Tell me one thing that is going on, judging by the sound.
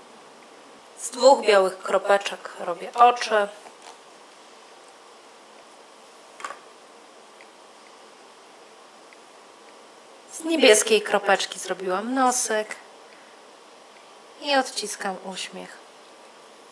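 A woman speaks calmly in short bursts, close by.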